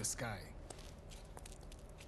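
Shoes step on hard ground.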